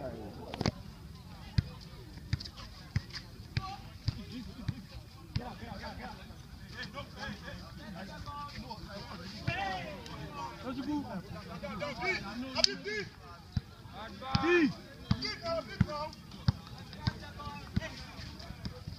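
A basketball bounces sharply on a hard outdoor court.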